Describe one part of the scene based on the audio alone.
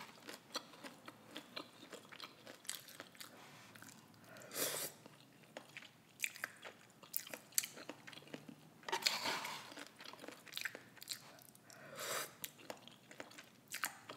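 A woman chews wetly and smacks her lips close to a microphone.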